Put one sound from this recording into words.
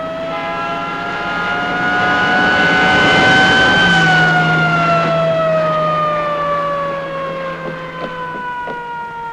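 A car engine approaches and passes on a snowy road.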